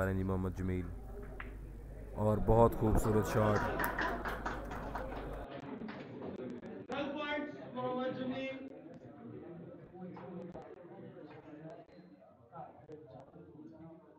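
A snooker cue strikes a ball with a sharp click.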